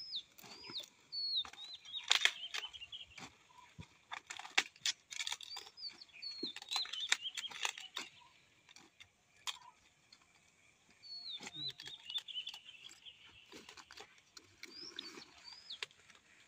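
Large leaves rustle and snap as cauliflower heads are trimmed by hand.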